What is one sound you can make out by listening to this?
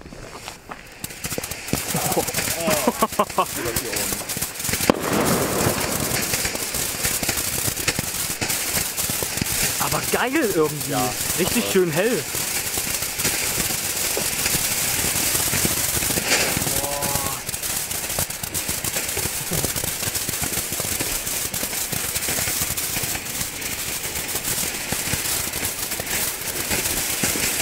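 Firecrackers pop and bang in quick bursts.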